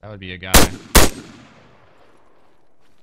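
A rifle fires two loud shots that echo away.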